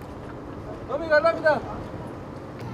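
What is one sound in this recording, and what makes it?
An elderly man calls out from a distance.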